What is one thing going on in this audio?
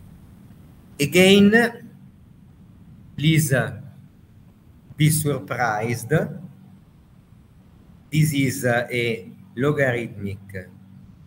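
An elderly man speaks calmly in bursts, heard through an online call.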